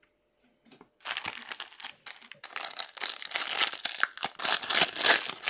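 Plastic wrap crackles and tears as it is peeled off.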